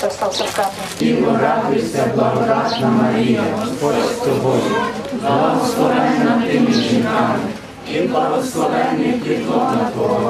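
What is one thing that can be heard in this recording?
A group of women sings together close by.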